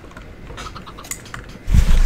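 A chicken clucks.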